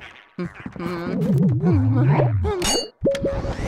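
A cartoon ghost wails and warbles in a game.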